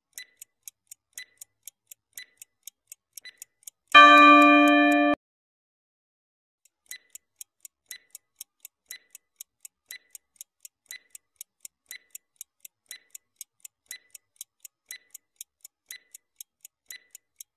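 A stopwatch ticks steadily.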